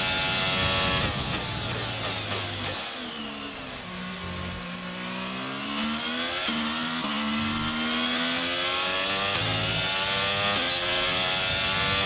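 A racing car engine drops in pitch as the car brakes hard for a corner, then revs up again.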